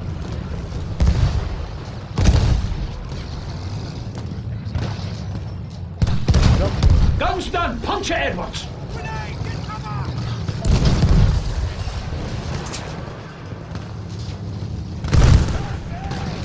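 Shells explode with heavy booms.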